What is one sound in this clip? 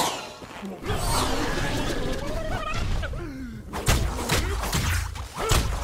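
Magical energy blasts whoosh and crackle.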